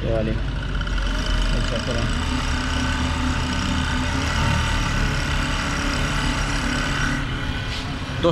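A sewing machine hums steadily as it runs.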